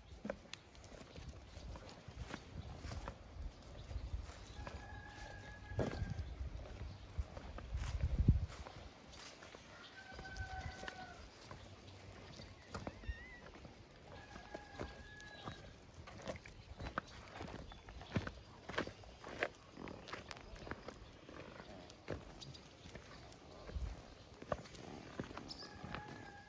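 Small dogs scamper with light pattering paws on gravel.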